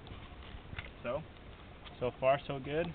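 A young man talks casually nearby, outdoors.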